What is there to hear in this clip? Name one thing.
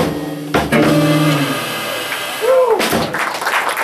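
An electric guitar strums chords.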